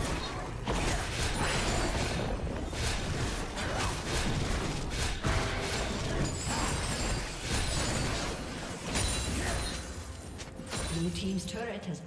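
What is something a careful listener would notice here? Video game combat effects crackle and clash as magic spells and strikes land.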